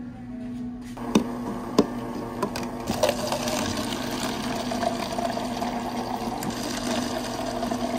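Water pours steadily into plastic cups.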